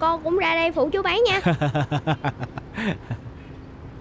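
A man laughs warmly close by.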